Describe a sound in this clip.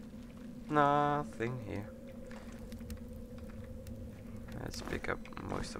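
A torch flame crackles softly.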